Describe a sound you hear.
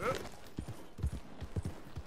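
A horse's hooves thud on the ground.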